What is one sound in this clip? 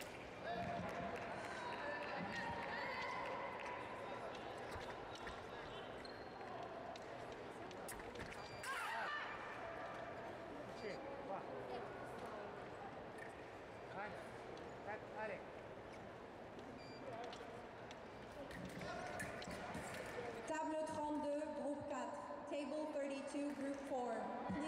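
Blades clash and click as two fencers duel.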